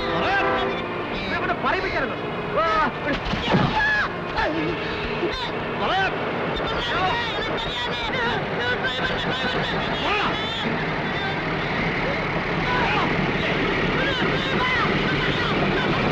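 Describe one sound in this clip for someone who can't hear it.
A man shouts and groans in distress.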